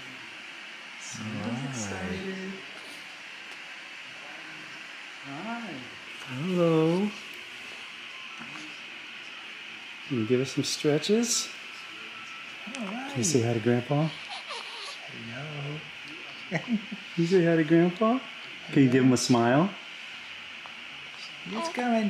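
A man speaks softly and playfully in baby talk, close by.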